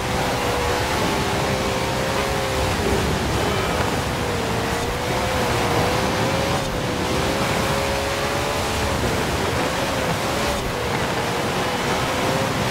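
Tyres hiss and crunch over snow.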